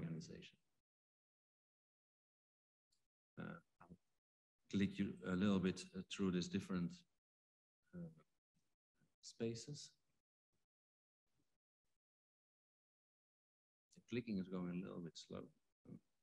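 A woman speaks calmly and haltingly, heard through an online call.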